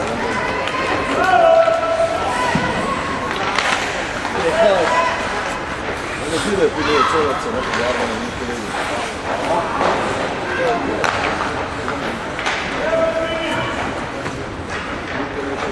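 Young players shout to each other across the rink.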